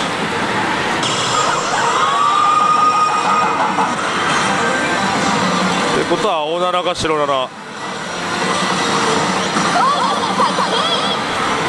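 A slot machine plays loud electronic music and sound effects.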